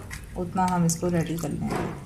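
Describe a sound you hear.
Water pours into a bowl of flour.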